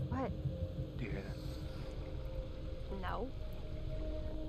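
A young woman answers in a hushed voice.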